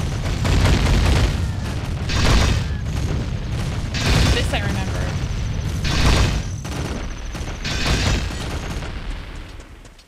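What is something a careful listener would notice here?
Heavy boulders rumble and crash down again and again.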